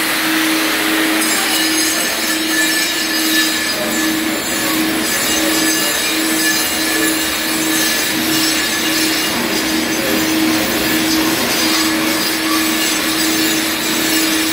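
A grinding disc scrapes harshly across concrete.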